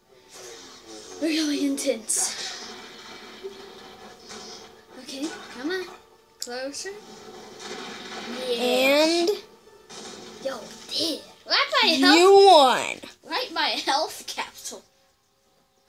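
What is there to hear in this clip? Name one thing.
A lightsaber hums and swooshes through the air.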